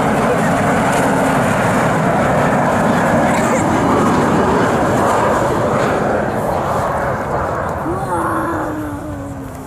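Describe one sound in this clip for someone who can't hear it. A jet airliner roars loudly overhead as it comes in to land, its engine noise slowly fading.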